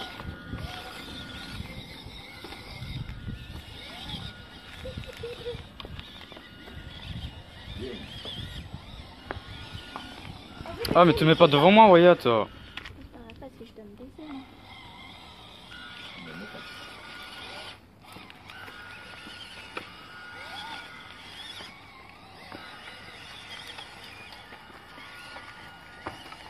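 Small electric motors whir as toy trucks crawl over bumpy stones.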